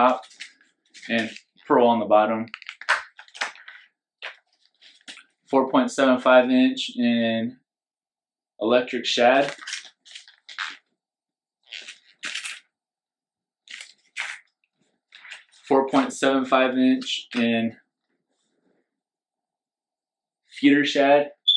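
Plastic packaging crinkles in hands.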